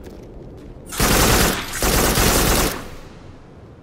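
A gun fires loud, rushing blasts.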